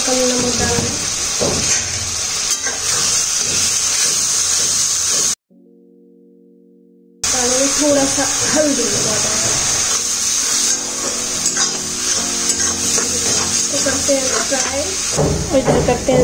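Food sizzles and hisses in hot oil.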